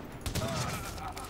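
A sniper rifle fires a single shot.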